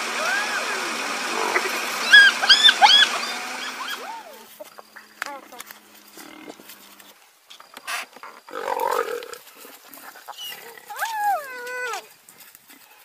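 Hyenas whoop and giggle in high, rising cries close by.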